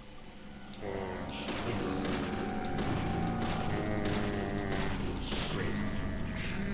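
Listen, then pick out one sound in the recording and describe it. A pistol fires several sharp shots in quick succession.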